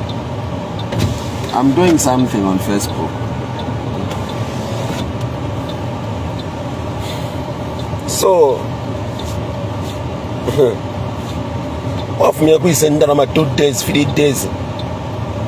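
A man speaks with animation close to a phone microphone.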